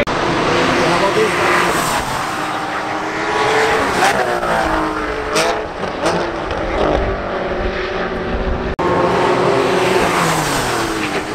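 Racing car engines roar and whine as cars speed past.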